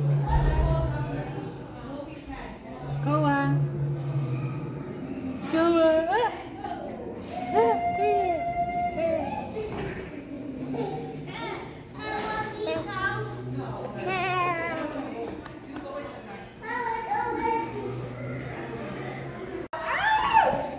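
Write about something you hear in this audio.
A baby babbles close by.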